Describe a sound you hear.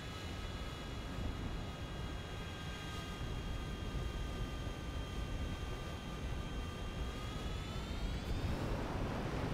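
A jet fighter's engine whines at high pitch.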